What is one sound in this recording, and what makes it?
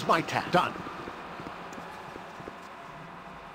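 Footsteps tap softly on a stone floor.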